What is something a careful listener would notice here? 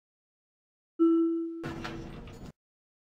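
A soft chime rings once.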